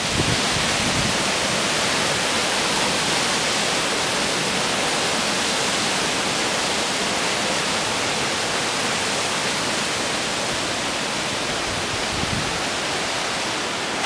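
A stream rushes and splashes nearby.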